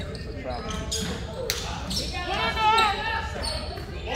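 A basketball bounces on a hardwood court.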